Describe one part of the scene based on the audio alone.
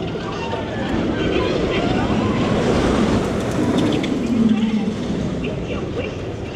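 A roller coaster train roars and rumbles past overhead.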